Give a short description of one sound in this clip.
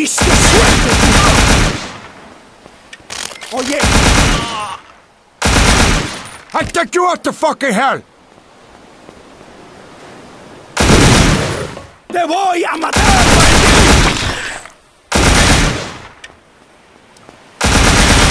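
An assault rifle fires in rapid bursts.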